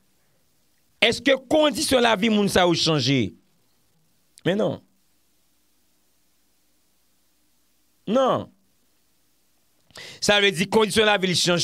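A man speaks closely into a microphone with animation, pausing between phrases.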